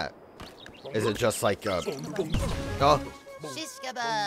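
A small cartoon bug chirps and squeaks in high, bouncy bursts.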